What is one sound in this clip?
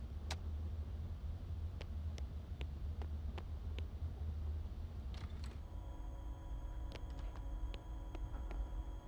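Quick footsteps tap along a hard floor.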